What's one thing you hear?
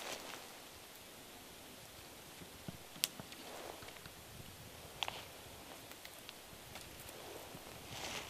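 Branches rustle as a man reaches into a tree.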